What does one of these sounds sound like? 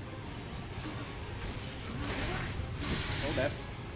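Blasts and whooshes from a fighting game ring out.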